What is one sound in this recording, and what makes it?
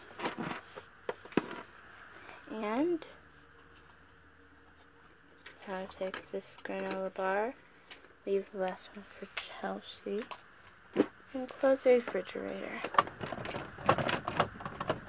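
Small plastic toy pieces knock and clatter.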